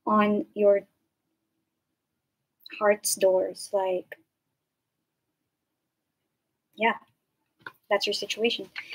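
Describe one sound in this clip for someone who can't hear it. A young woman speaks calmly and closely into a microphone, with pauses.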